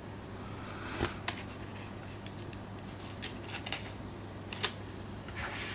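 A plastic disc case clicks as a disc is pressed and lifted.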